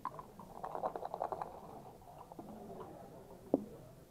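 Dice rattle and tumble onto a backgammon board.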